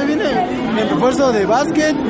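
A young man speaks close by.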